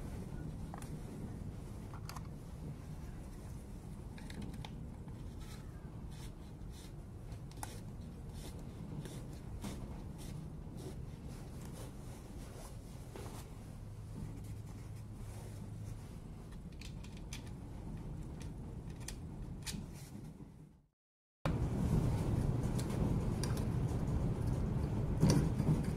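Small metal parts click and clatter.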